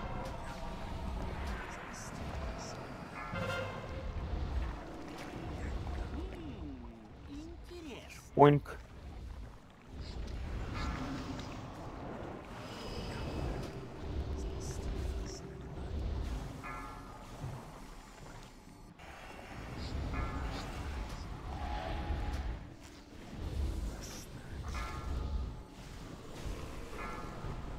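Spell effects and battle sounds clash and whoosh steadily.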